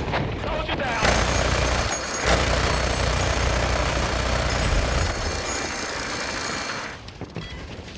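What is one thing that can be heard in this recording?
A mounted heavy machine gun fires.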